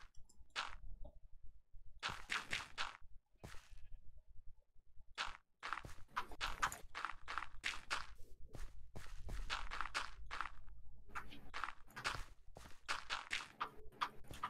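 Dirt blocks crunch as they are dug out in a video game.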